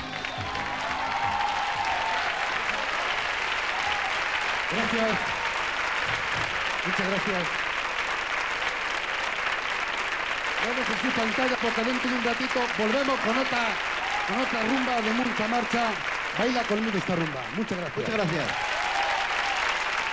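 A man sings into a microphone over a loudspeaker.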